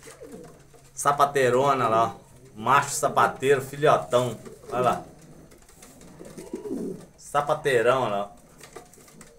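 Pigeons coo in low, throaty bursts close by.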